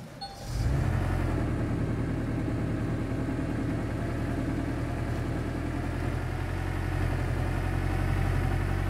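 A heavy diesel engine rumbles steadily as a dump truck drives off.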